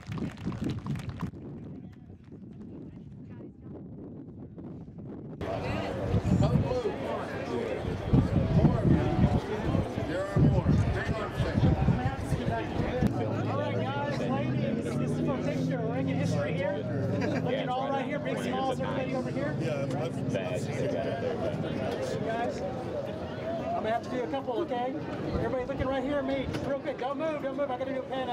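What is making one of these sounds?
A crowd of men and women chatter and talk outdoors.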